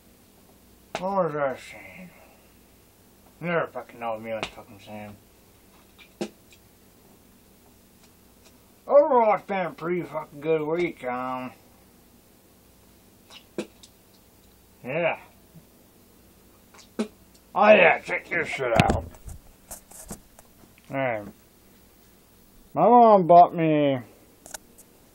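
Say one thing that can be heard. A young man talks in short bursts, close to the microphone.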